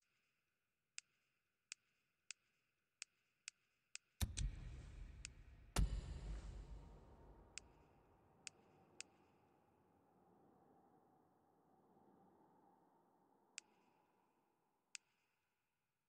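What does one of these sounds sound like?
Short menu clicks tick as selections change.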